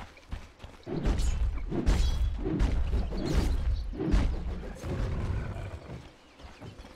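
Game spells crackle and boom in a fight.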